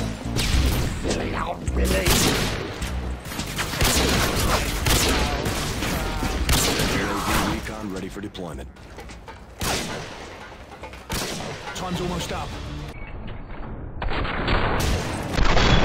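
A rifle fires loud gunshots.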